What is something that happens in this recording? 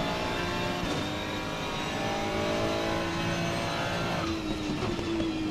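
A racing car's engine roars steadily at high revs.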